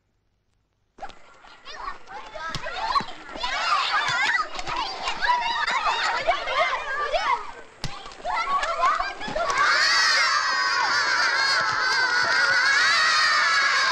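A crowd of children shout and cheer outdoors.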